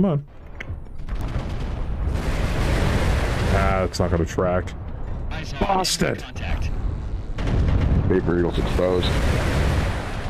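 Laser weapons fire with a loud buzzing hiss.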